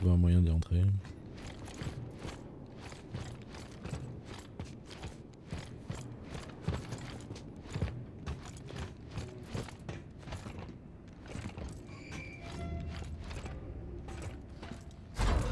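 Heavy boots step steadily on a metal floor.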